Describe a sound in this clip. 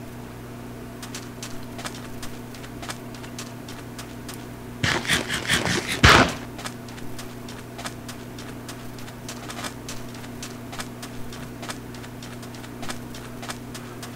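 A game character's footsteps crunch on sand.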